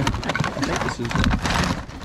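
Cables rustle as hands shift them.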